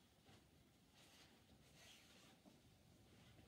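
Cloth rustles as it is unfolded and lifted.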